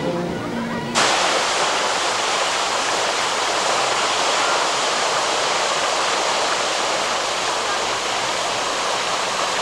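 Fountain jets splash and rush steadily.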